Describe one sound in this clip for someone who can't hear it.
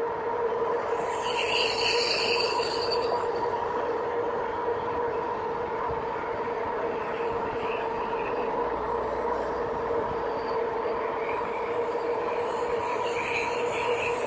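An electric motor whines steadily at a high pitch.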